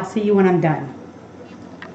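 A middle-aged woman speaks briefly and with animation, close by.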